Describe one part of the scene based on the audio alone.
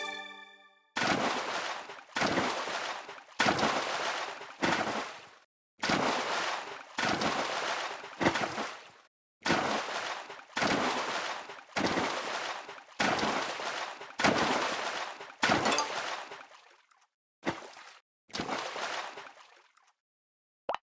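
Fish splash out of the water again and again.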